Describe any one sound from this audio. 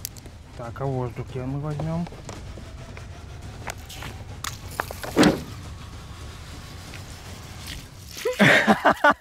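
Water gurgles and splashes as it pours from a bottle.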